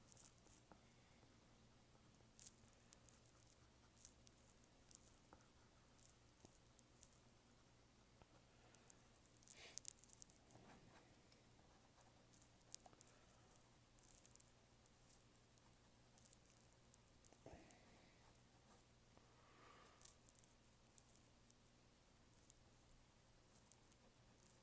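A pencil scratches and scrapes softly on paper.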